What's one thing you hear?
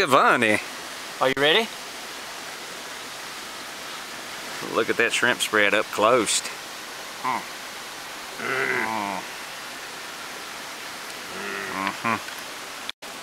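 An older man talks with animation close by, outdoors.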